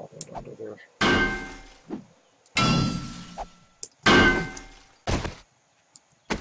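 A pickaxe strikes hard with sharp ringing blows.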